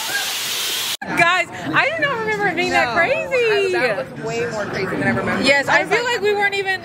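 A young woman laughs and talks excitedly close by.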